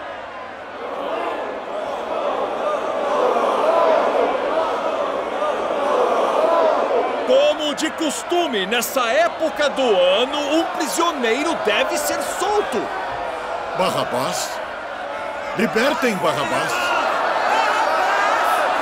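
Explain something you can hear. A large crowd murmurs and shouts.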